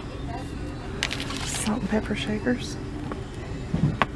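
Plastic packaging crinkles and rustles in a hand.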